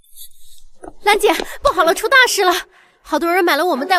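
A young woman cries out in alarm.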